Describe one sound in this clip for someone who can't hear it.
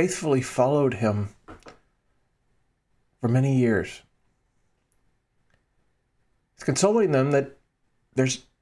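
A middle-aged man speaks calmly and warmly into a close microphone, in short phrases with pauses.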